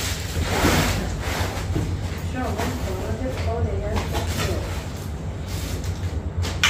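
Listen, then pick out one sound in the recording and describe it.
Clothes rustle as they are packed into a suitcase.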